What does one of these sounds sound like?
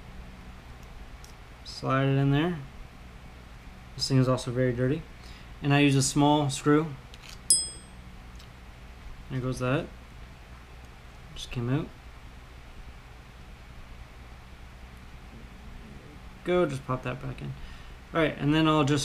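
Small metal parts click and rattle together in someone's hands.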